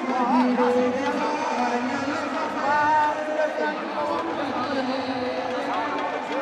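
A large crowd chants loudly outdoors.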